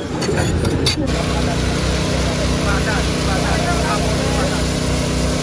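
An excavator engine rumbles steadily with a pulsing throb.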